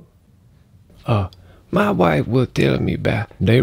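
A man speaks in a playful puppet voice with animation, close by.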